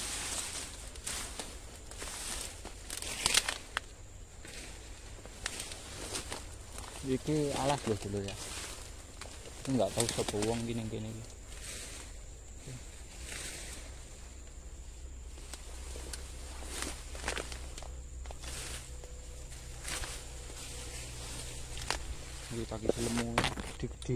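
Leafy plants rustle and swish as someone pushes through dense undergrowth.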